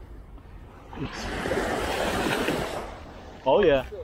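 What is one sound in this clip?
Small waves wash up over sand.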